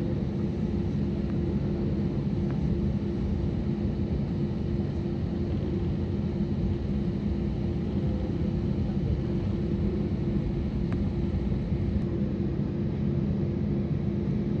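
Jet engines rumble steadily from inside an aircraft cabin as it taxis.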